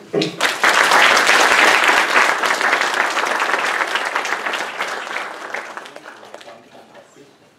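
An audience applauds loudly, then the clapping fades away.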